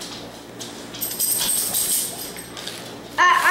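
Small pieces rattle inside a tube being shaken.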